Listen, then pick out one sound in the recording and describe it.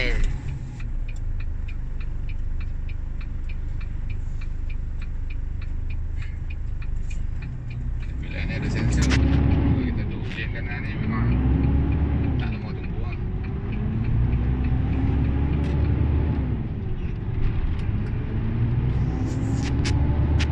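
A car engine hums from inside and revs up through gear changes as the car pulls away.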